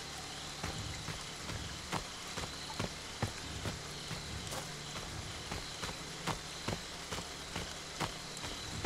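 Footsteps crunch on a leafy forest floor at a steady walking pace.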